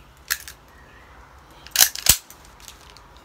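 Metal parts of a pistol click and clack sharply.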